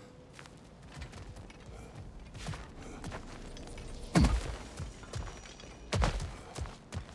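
Heavy footsteps crunch and thud on stony ground.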